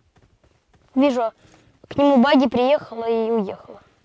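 A young man speaks loudly with animation into a microphone.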